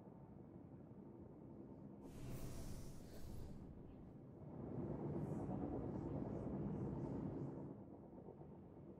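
Spaceship engines hum with a low rumble.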